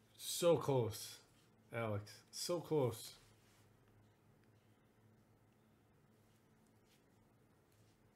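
Trading cards slide and rustle between fingers.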